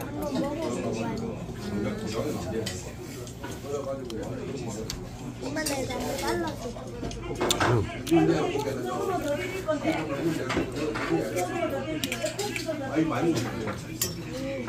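Metal chopsticks click against a metal bowl.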